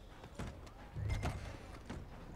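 A heavy door thuds open.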